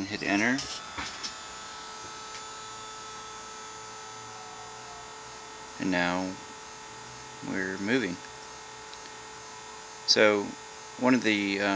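Stepper motors hum and whine steadily.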